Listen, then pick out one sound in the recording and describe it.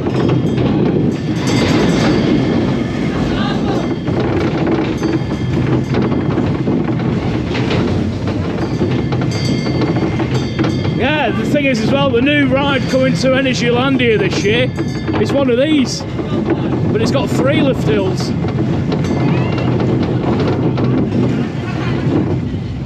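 A roller coaster rattles and clatters loudly along its track.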